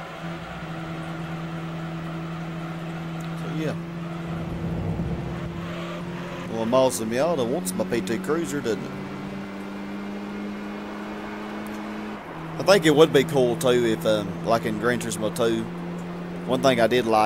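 A car engine hums steadily at high revs, shifting up a gear.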